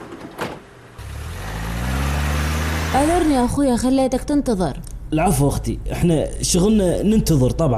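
A van's engine starts and hums.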